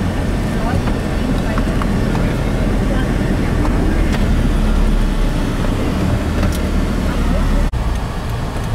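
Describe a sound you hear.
A car engine hums steadily while driving along a road.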